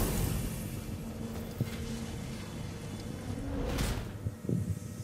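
A bright magical beam roars and hisses.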